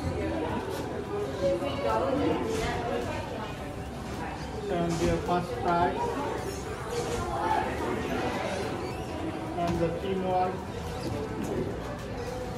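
Hinged panels flap open and shut with light clacks.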